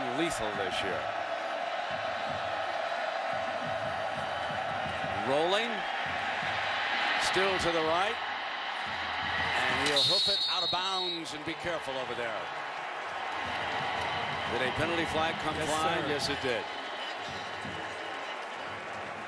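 A large crowd roars and cheers outdoors.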